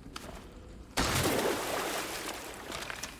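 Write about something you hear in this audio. Boots land heavily on rocky ground with a loud scraping rush.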